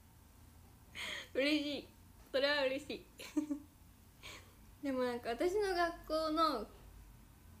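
A young woman laughs behind her hand.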